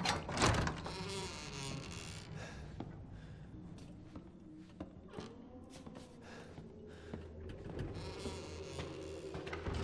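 Footsteps thud slowly on creaky wooden floorboards.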